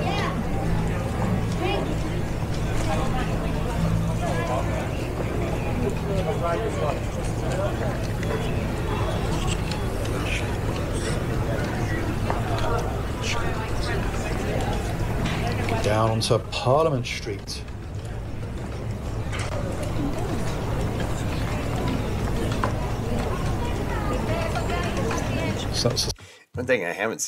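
A crowd of people chatters and walks along a busy street.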